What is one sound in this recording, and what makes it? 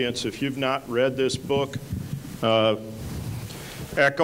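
An older man asks a question into a handheld microphone.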